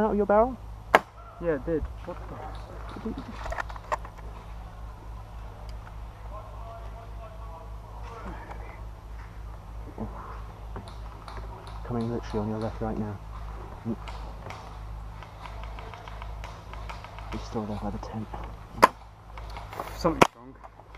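A paintball gun fires sharp, single shots close by.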